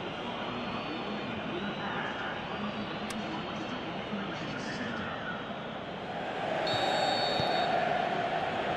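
A large stadium crowd murmurs and cheers.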